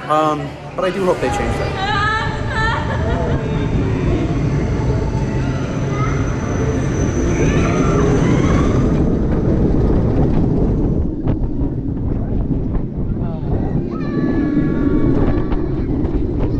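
A roller coaster rumbles and clatters along its track.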